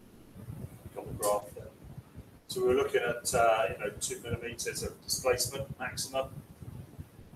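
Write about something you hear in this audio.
An elderly man speaks calmly, as if giving a lecture.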